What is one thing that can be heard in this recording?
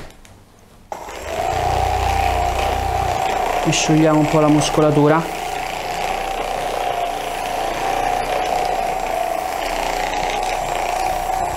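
A massage gun buzzes steadily.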